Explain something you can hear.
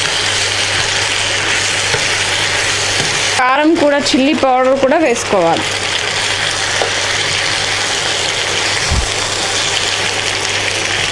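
A metal spatula scrapes and stirs food in a frying pan.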